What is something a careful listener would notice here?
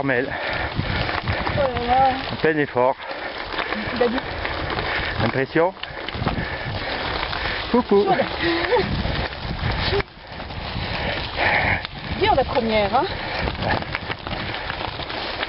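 Bicycle tyres crunch over loose gravel.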